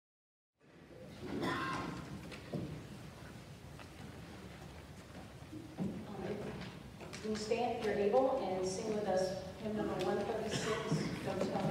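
A piano plays softly in a large echoing hall.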